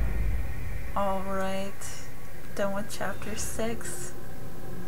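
Short bright menu chimes ring out as options are selected.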